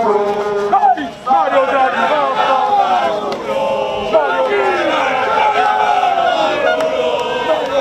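A large crowd outdoors chants and shouts loudly.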